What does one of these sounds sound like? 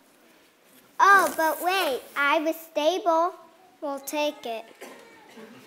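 A young child speaks loudly in a hall.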